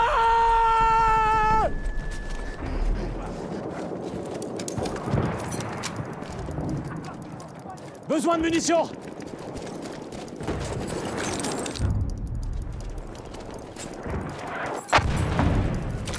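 Gunfire crackles in the distance.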